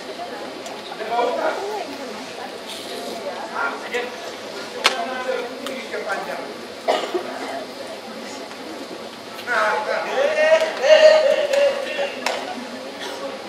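A man speaks with animation through a loudspeaker.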